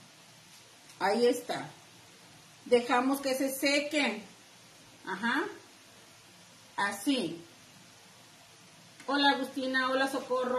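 A middle-aged woman speaks calmly close by, in short phrases with pauses.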